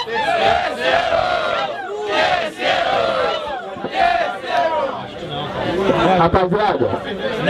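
A young man raps rhythmically and forcefully, close by.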